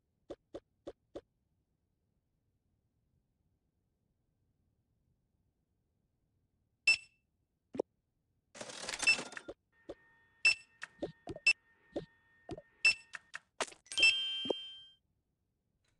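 Short chiming and popping game sound effects play from a tablet.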